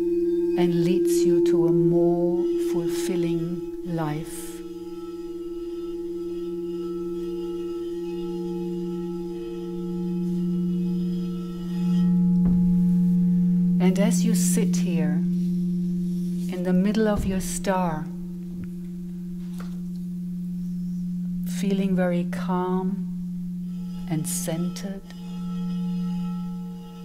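Crystal singing bowls ring with steady, overlapping tones that swell and fade.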